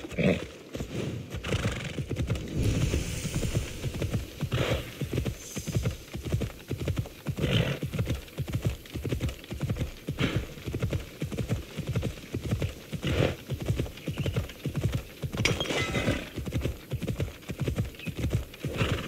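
A horse's hooves gallop steadily over dry ground.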